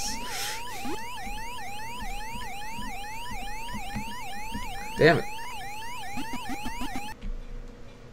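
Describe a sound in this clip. A video game siren warbles steadily up and down.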